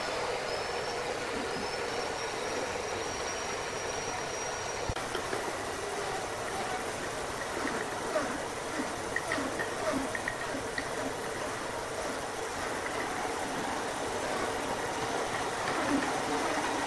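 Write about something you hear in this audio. A band saw runs with a steady whirring hum.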